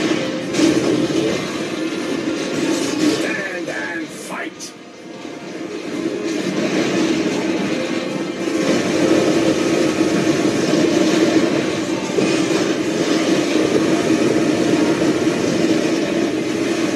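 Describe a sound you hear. Video game explosions and mechanical robot sounds play loudly from a television speaker.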